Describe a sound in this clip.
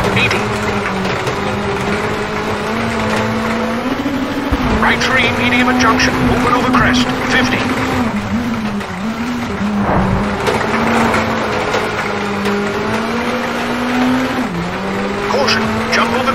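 Gravel crunches and rattles under the tyres.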